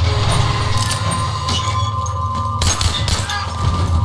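Tank tracks clank and squeal as a tank rolls forward.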